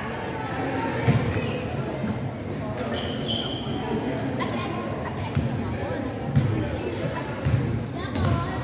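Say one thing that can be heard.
A basketball bounces on a hardwood court in an echoing gym.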